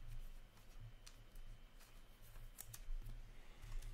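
Trading cards flick and rustle against each other.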